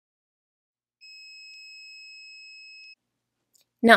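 A machine beeps with a steady, high tone.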